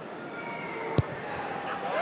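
A boot thumps a ball with a sharp kick.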